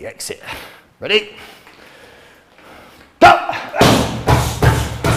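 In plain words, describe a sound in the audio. Punches thud against a padded shield.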